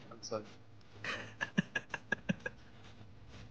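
A man laughs in short bursts close to a microphone.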